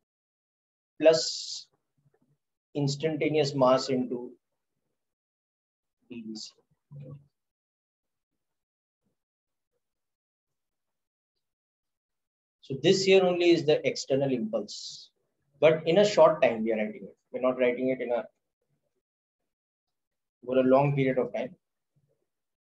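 A man speaks calmly through a microphone, in short bursts with pauses.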